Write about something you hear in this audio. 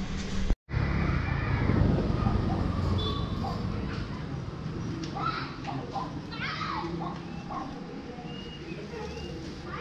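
A knife cuts meat on a board.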